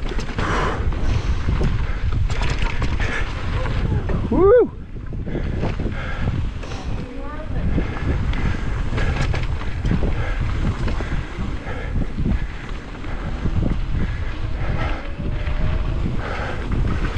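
A bicycle rattles over rocks and bumps.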